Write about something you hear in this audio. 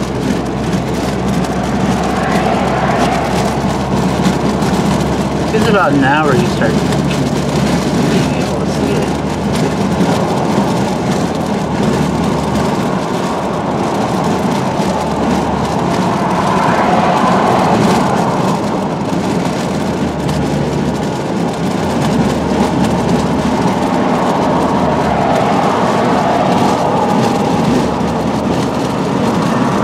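Road noise and engine hum fill a moving car.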